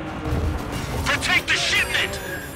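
Heavy barriers crash and clatter as a car smashes through them.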